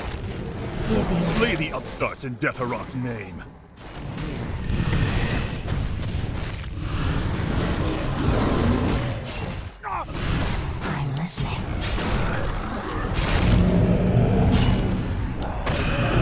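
Weapons clash in a busy fantasy battle.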